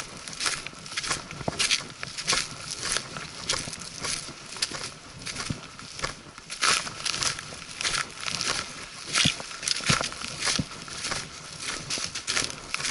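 Footsteps crunch and rustle through dry leaves.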